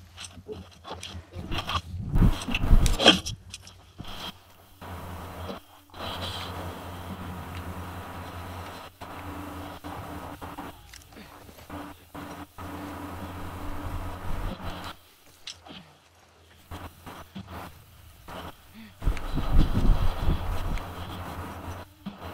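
Tall grass rustles as people crawl through it.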